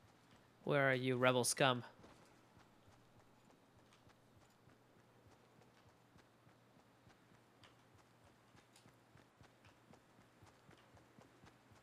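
Footsteps run quickly and steadily through grass.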